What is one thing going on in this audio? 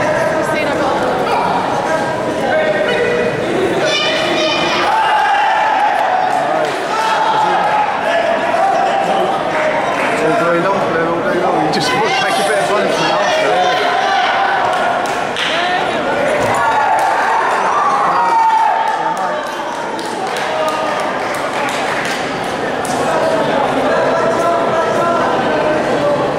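A man referee shouts commands loudly across the hall.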